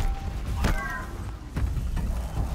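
Electric sparks crackle and zap.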